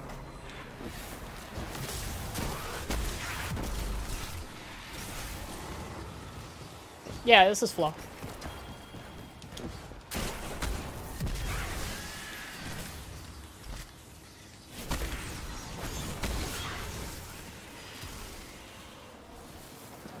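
Gunfire and energy blasts boom and crackle.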